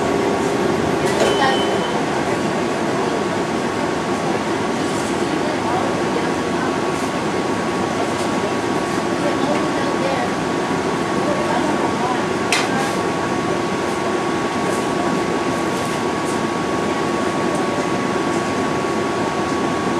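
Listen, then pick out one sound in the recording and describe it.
A bus engine hums steadily, heard from inside.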